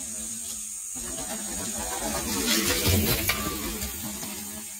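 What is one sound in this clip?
A mountain bike rattles over a dirt trail as it approaches.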